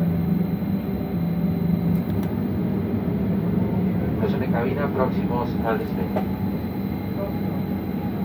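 A jet engine hums and rumbles steadily from inside an aircraft cabin.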